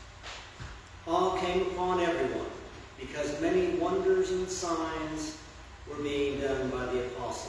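An elderly woman speaks calmly into a microphone, echoing in a large hall.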